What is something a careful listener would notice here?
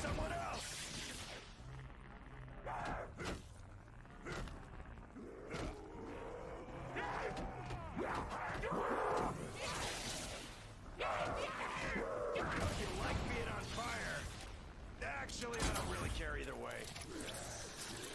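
Electric blasts crackle and zap.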